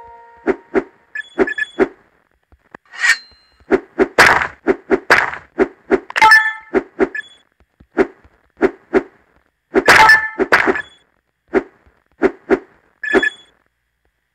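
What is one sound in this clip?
Short bouncy game jump sounds repeat quickly.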